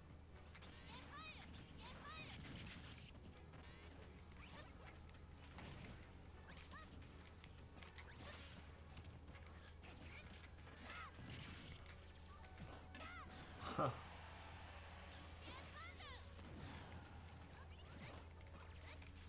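Electronic chirps and whooshes rise and fall throughout.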